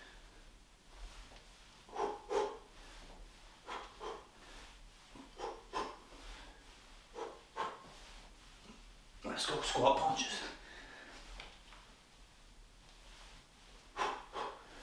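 A man breathes out sharply in short bursts while exercising.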